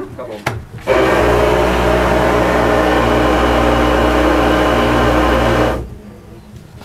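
A disinfection booth sprays mist with a loud steady hiss.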